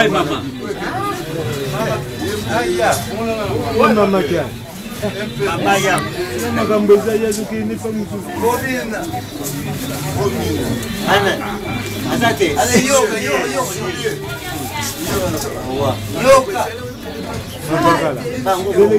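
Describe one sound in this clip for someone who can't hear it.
Several men and women talk over one another nearby.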